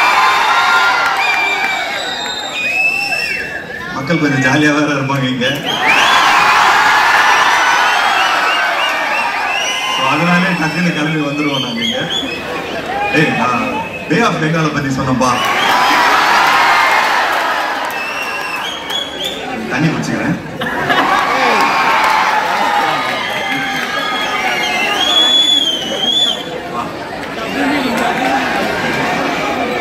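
A large crowd cheers, screams and whistles loudly.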